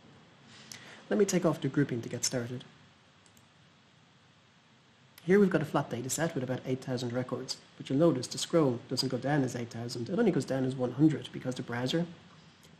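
A man talks calmly into a close microphone.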